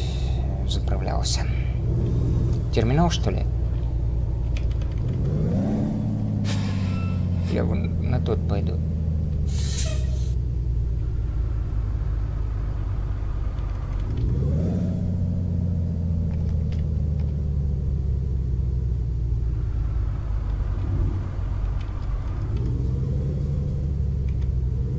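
A truck engine rumbles steadily and revs up as gears shift.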